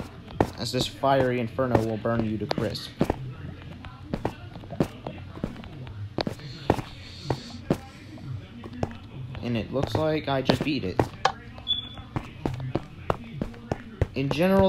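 Footsteps tap on stone at a walking pace.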